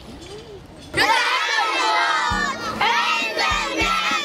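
A group of boys chants loudly together, close by.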